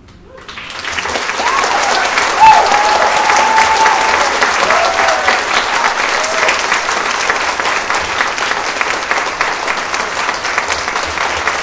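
A large orchestra plays in an echoing hall.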